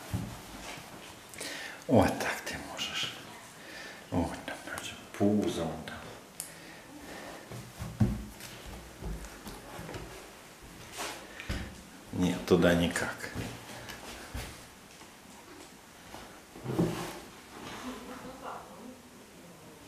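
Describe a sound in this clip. A lion cub thumps and scuffles on a wooden floor.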